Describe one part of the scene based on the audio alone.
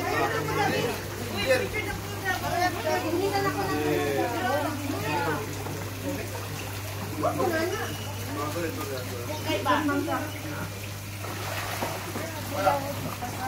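Fish splash and thrash in the water.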